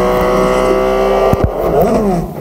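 A racing car engine roars at high revs.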